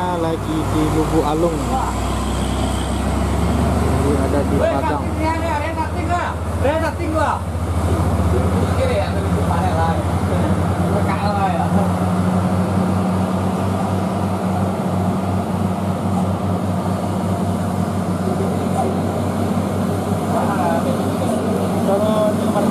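A large truck engine rumbles and labours uphill.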